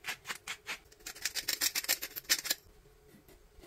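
A pepper grinder grinds in quick bursts.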